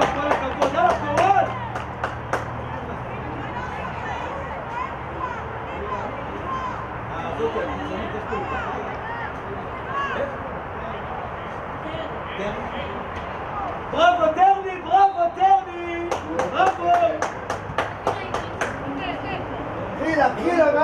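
Players shout to each other across an open outdoor pitch.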